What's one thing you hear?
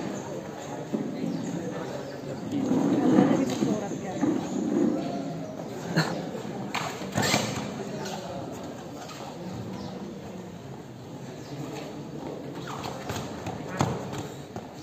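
Bare feet slap and shuffle on a mat.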